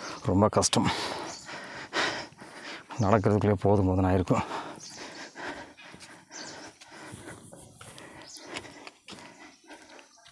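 Footsteps crunch on dry leaves along a dirt path.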